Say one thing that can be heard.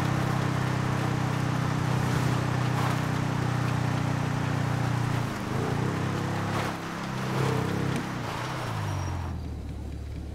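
A motorbike engine roars steadily and then revs up and down.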